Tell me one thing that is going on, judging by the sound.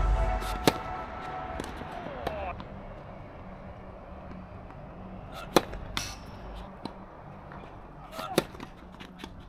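Tennis balls are struck with sharp pops of rackets outdoors.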